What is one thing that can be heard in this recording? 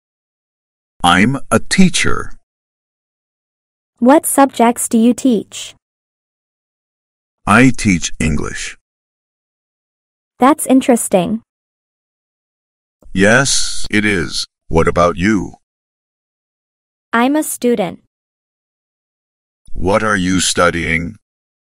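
A young woman answers calmly and clearly, taking turns in a conversation.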